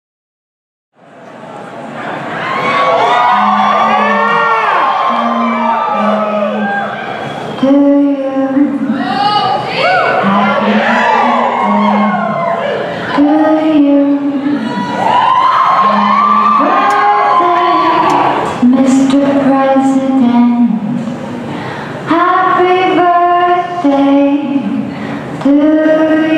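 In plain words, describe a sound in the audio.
Pop music with a woman singing plays loudly over loudspeakers.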